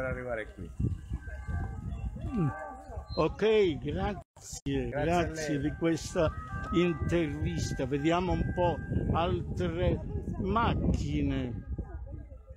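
An elderly man talks animatedly close by, outdoors.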